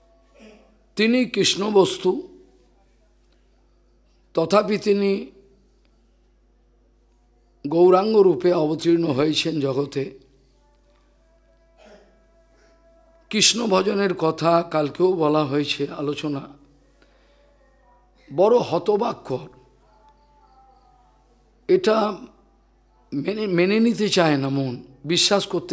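An elderly man speaks calmly into a microphone, in short phrases with pauses.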